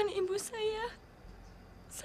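A young woman sobs and wails loudly close by.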